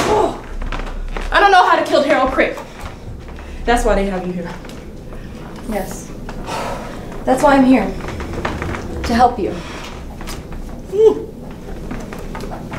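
A young woman speaks, acting out a scene.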